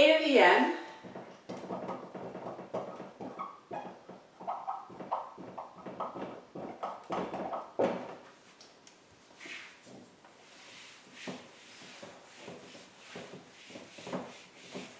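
A marker squeaks and taps against a whiteboard.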